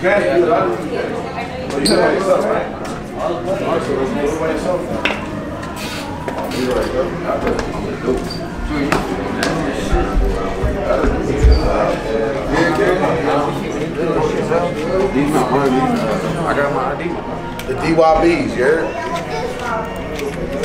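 A crowd of young men chatters and talks over one another indoors.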